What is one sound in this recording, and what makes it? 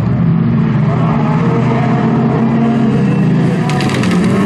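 Tyres skid and crunch over loose gravel and dirt.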